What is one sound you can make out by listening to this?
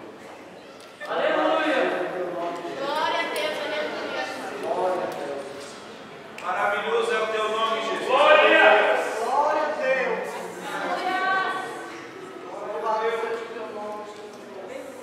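A woman speaks with animation in an echoing hall.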